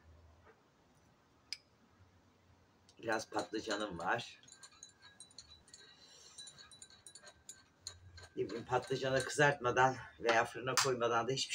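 A spoon clinks against a cup.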